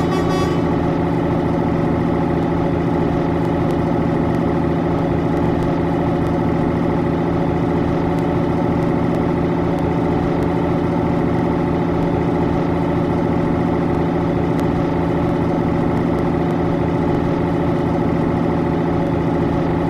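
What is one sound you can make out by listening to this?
A truck engine drones steadily as the truck cruises along a highway.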